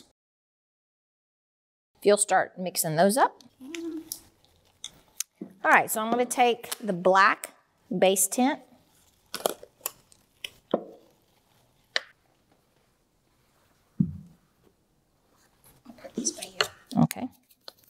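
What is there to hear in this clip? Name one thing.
A wooden stick scrapes and taps inside a plastic cup.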